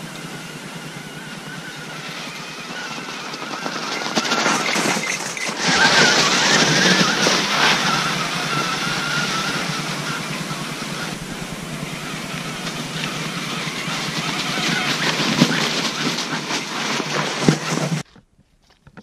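Bicycle tyres crunch over snow and gravel.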